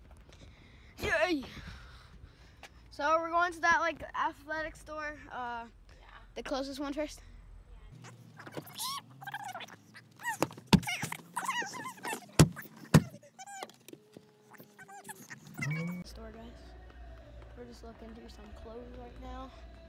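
A boy talks excitedly, close by.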